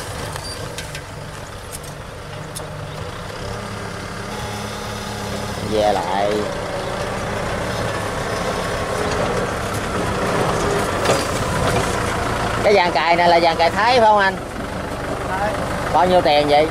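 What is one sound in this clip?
A diesel tractor engine runs under load, pulling a disc plough.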